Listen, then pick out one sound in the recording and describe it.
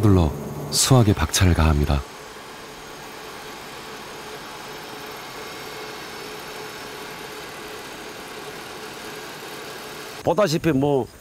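A harvester engine hums steadily nearby.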